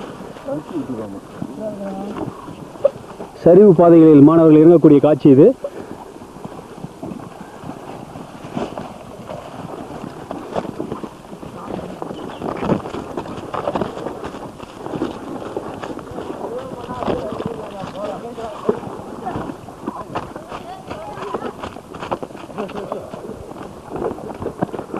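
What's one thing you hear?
Footsteps crunch and rustle through dry leaves and brush.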